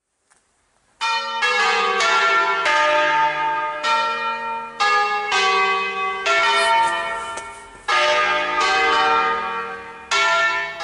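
Church bells ring out loudly, swinging and chiming in a steady pattern.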